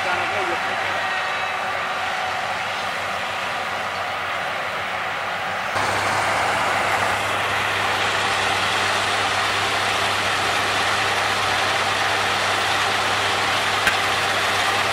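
Grain pours with a rushing hiss into a trailer.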